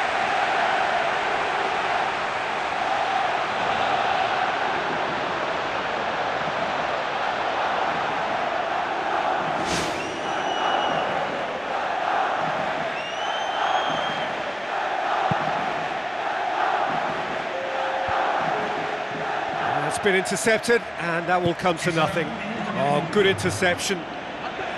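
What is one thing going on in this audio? A large stadium crowd roars and chants.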